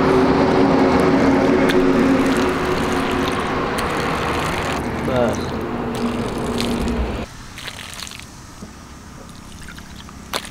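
Water pours from a jug and splashes into cupped hands.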